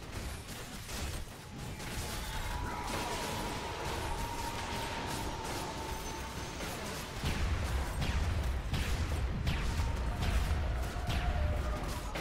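Game battle sounds clash, zap and crackle in quick bursts.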